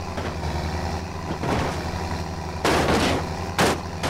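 A tractor engine revs as it climbs onto a trailer.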